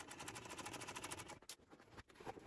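A sewing machine stitches rapidly.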